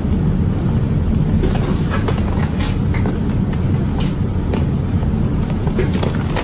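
Small parts click and tap as hands handle a sewing machine.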